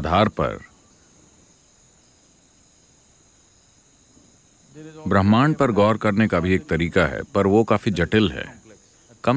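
An elderly man speaks calmly and thoughtfully, close to a microphone.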